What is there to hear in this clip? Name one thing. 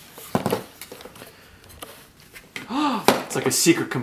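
A lid scrapes as it is lifted off a box.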